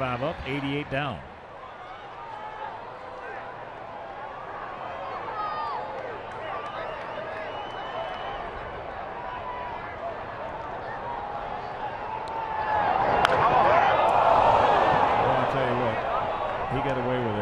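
A large crowd murmurs steadily in a stadium.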